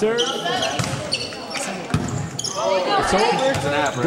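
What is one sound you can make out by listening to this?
A volleyball is struck with a sharp smack.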